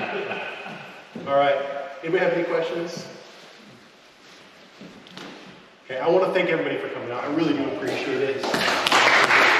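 A young man speaks up loudly in a large echoing hall.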